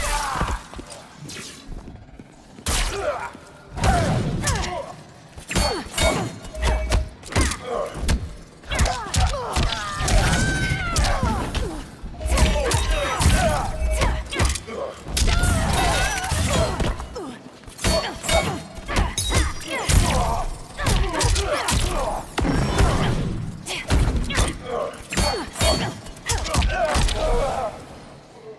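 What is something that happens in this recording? Punches and kicks land with heavy thuds in a video game fight.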